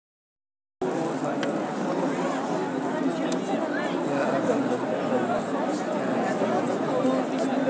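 A dense crowd of men murmurs and calls out all around, close by.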